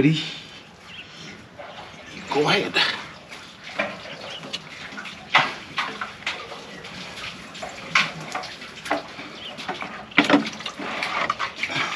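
A rope scrapes and knocks against a well's rim as a bucket is hauled up.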